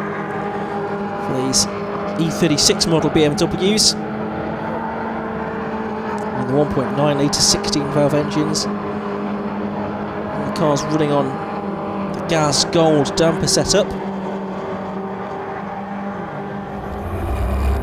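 Racing car engines roar as cars speed past.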